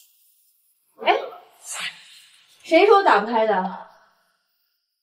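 A woman asks a sharp question, close by.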